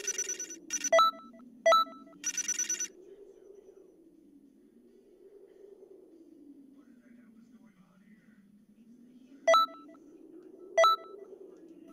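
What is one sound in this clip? Short game chimes ring out sharply.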